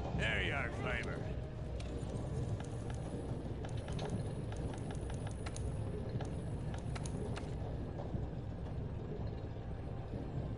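A low, steady rumble of a furnace fills the background.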